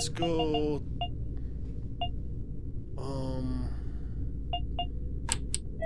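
Elevator buttons beep with short electronic tones.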